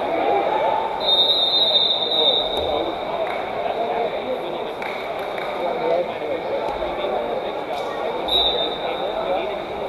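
A referee's whistle blows in short shrill bursts.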